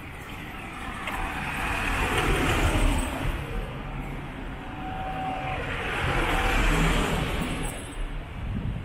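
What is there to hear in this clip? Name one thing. A car drives past close by on a city street.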